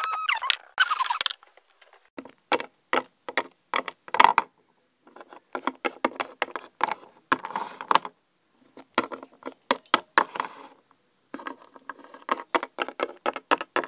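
Small plastic toys tap and clatter on a wooden tabletop.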